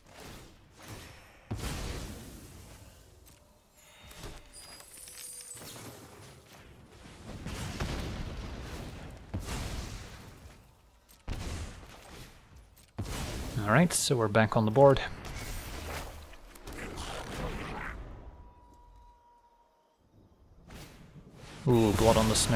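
Magical spell effects whoosh and crackle.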